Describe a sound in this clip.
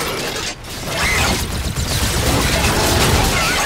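Gunfire rings out in bursts.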